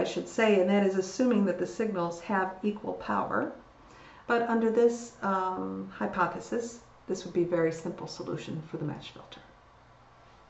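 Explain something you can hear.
An older woman speaks calmly through a microphone, as on an online call.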